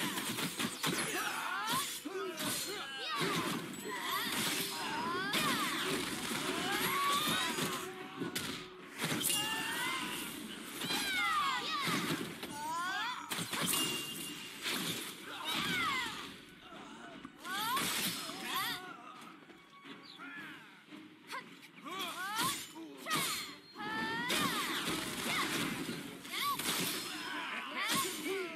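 Magic spells crackle and whoosh in quick bursts.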